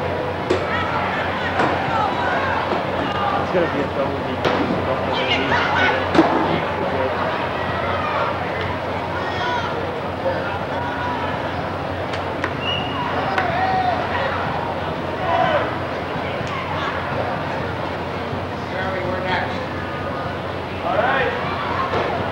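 Men shout loudly from the crowd close by.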